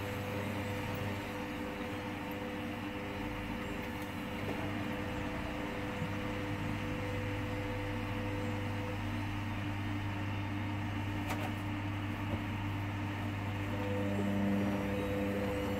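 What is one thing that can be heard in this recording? Laundry tumbles and swishes inside a washing machine.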